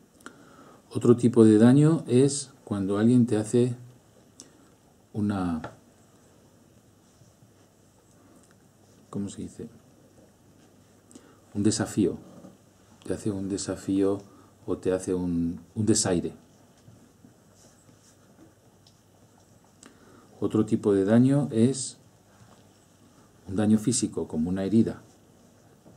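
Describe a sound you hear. A middle-aged man speaks calmly in short phrases with pauses, close to a microphone.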